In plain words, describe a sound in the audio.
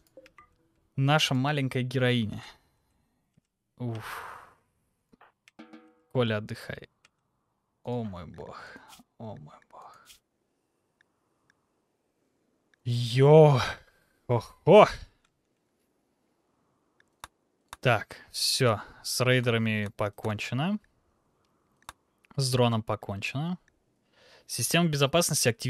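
A young man talks with animation into a close microphone, in bursts with pauses.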